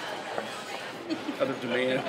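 A middle-aged man speaks close by.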